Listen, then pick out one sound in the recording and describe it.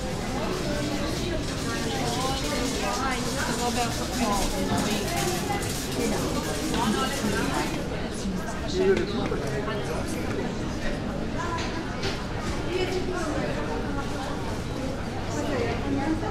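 Footsteps tap on a paved street.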